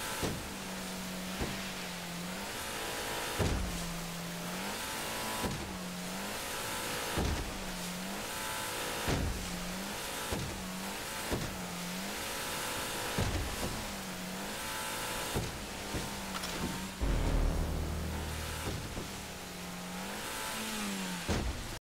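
Waves splash and slap against a boat's hull.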